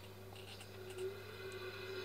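A woman sobs quietly, heard through a television speaker.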